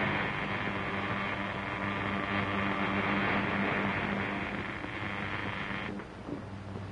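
Electric sparks crackle and buzz loudly.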